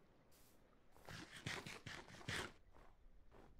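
A game character crunches and munches on food.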